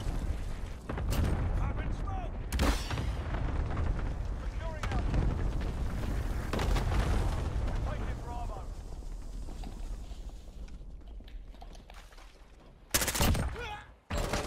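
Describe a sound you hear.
Gunfire rattles in short bursts, loud and close.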